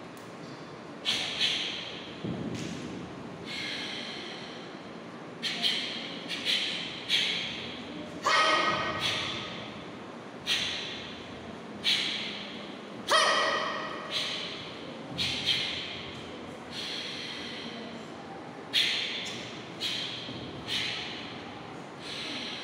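A karate uniform snaps sharply with each quick strike, echoing in a bare room.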